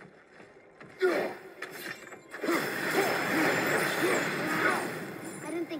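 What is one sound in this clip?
Magic roots crackle and burst apart with a loud whoosh.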